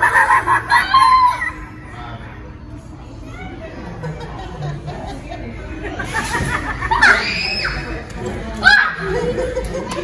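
An animatronic figure shrieks and cackles loudly.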